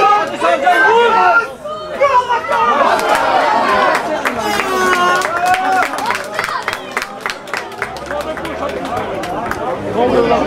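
Men in a small crowd shout and call out close by, outdoors.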